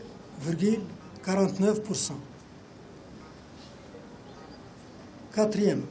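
An elderly man speaks calmly and slowly into microphones.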